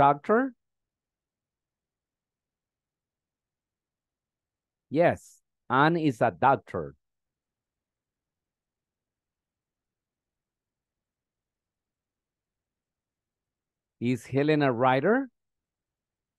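A man speaks in short phrases over an online call.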